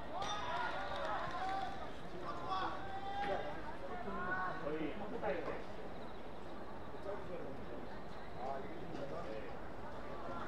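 Young players shout to one another from across an open field.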